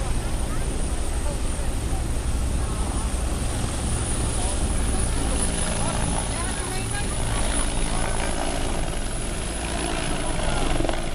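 A helicopter's rotor thumps loudly close by.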